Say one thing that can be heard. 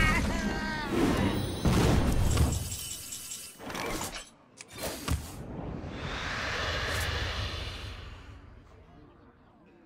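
Magical game sound effects chime and whoosh.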